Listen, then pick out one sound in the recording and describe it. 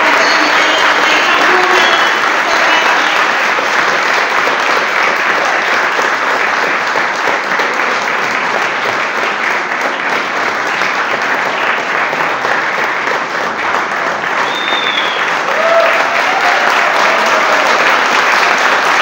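A live band plays loudly in a large hall.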